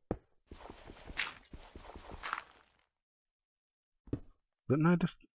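Stone crunches repeatedly as a pickaxe digs.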